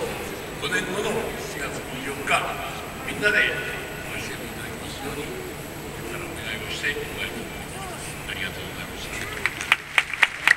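A man speaks calmly through loudspeakers in a large echoing hall.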